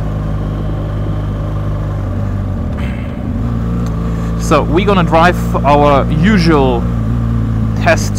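A motorcycle engine drones steadily while riding.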